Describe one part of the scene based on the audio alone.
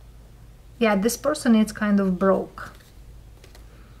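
A playing card slides softly across a pile of cards.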